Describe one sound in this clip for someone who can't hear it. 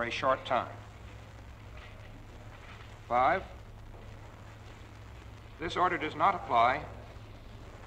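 A man speaks slowly and formally into a microphone, with pauses between phrases.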